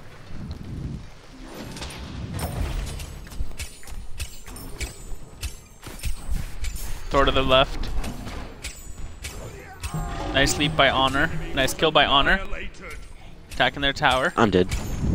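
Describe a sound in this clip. Game weapons fire and hit with sharp bursts.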